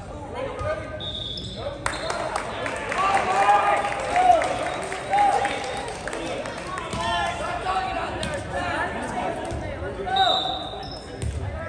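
A referee's whistle blows in a large echoing gym.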